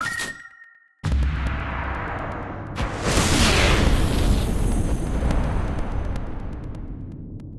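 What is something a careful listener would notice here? A deep magical whoosh and rumble swells up and slowly fades.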